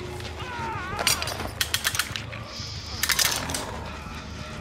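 A metal trap clanks and rattles.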